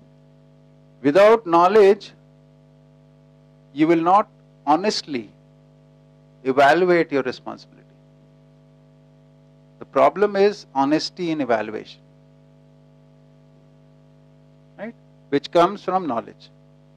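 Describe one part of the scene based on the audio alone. A middle-aged man speaks calmly in short bursts to a room.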